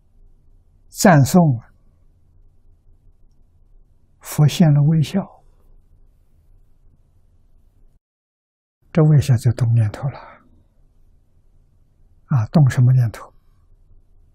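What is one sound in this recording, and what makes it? An elderly man speaks calmly and slowly into a close microphone, in short phrases with pauses.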